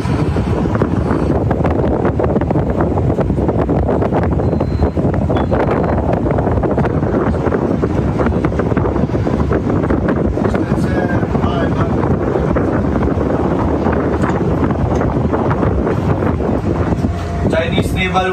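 Wind roars steadily over the open sea.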